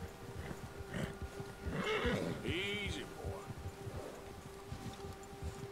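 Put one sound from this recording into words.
Horse hooves thud steadily through deep snow.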